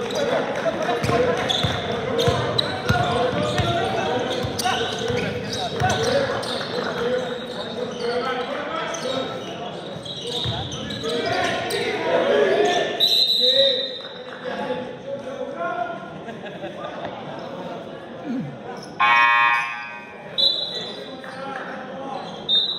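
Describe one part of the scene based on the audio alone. Young men shout and call out to each other across a large echoing gym.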